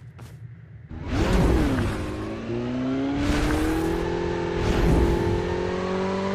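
A motorcycle engine revs and roars.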